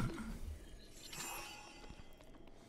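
A bright magical shimmer rings out.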